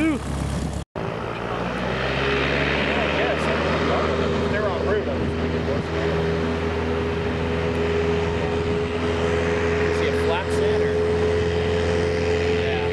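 A small propeller plane's engine drones steadily at a distance.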